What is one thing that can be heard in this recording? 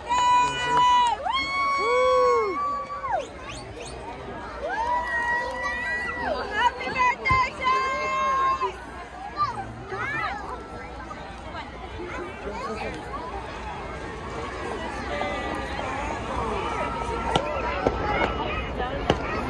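A crowd of people shouts and cheers outdoors.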